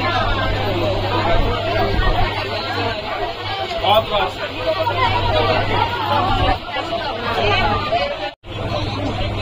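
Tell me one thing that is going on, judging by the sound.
A crowd of men chatters loudly close by.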